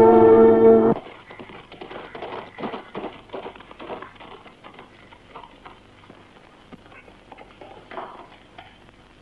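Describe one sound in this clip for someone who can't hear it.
Footsteps tread on hard ground.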